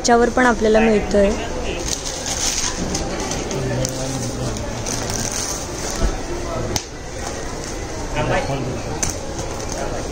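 Cloth rustles as it is unfolded and handled.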